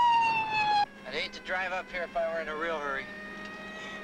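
A man talks loudly over a siren.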